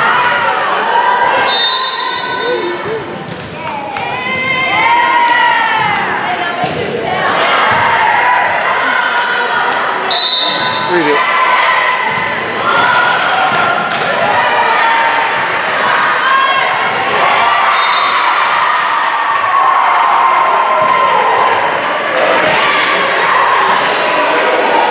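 A crowd of spectators murmurs in the background.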